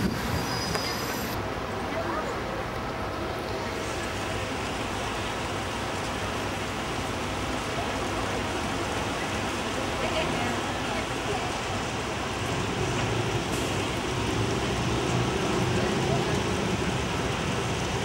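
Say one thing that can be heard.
Water splashes steadily from a fountain across an open square.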